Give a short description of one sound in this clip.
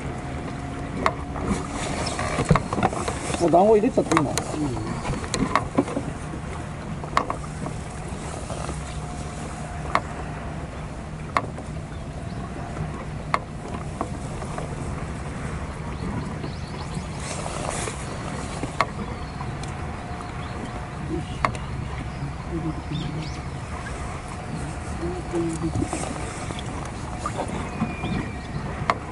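Clicks and light knocks come from a fishing reel and rod.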